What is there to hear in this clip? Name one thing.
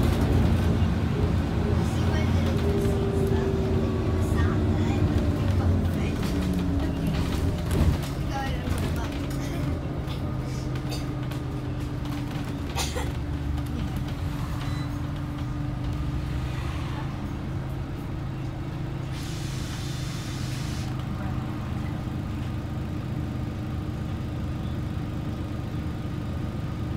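The bus interior rattles and clatters over the road.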